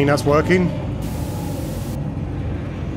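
Static hisses loudly for a moment.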